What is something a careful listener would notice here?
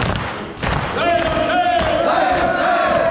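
A man chants loudly, and the sound echoes through the hall.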